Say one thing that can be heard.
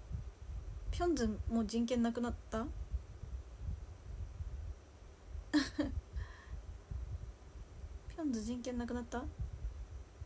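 A young woman speaks softly in short bursts, close by.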